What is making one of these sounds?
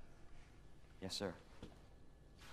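A young man answers briefly and calmly.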